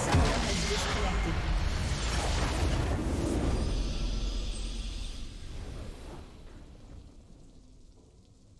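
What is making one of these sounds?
A triumphant game fanfare swells and fades away.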